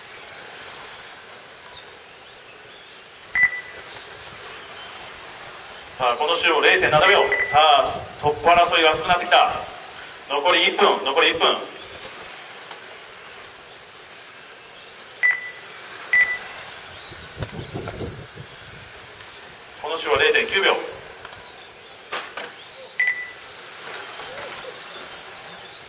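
Small electric motors whine high and shrill, rising and falling as toy racing cars speed around.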